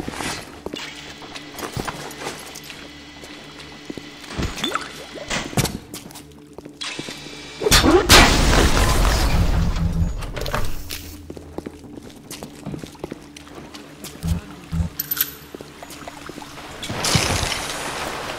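Footsteps thud on a hard stone floor.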